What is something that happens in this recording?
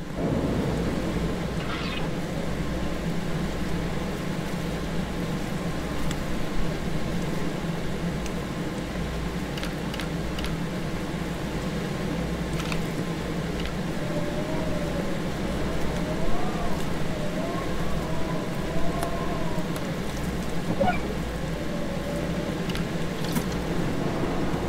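A machine hums with a low, steady drone.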